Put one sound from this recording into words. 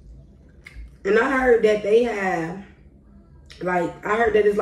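A young woman talks close to the microphone in a relaxed, animated way.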